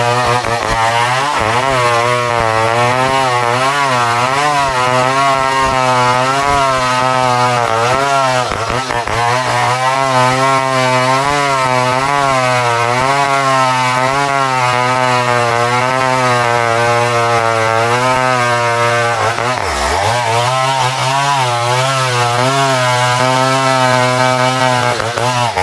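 A chainsaw engine roars loudly, its pitch wavering as it cuts into a tree trunk.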